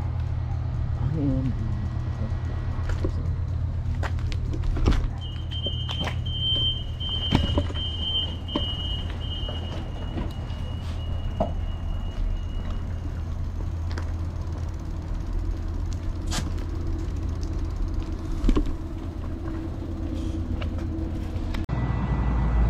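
A diesel train engine idles with a steady low rumble nearby.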